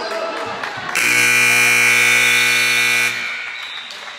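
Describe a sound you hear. A loud buzzer sounds steadily.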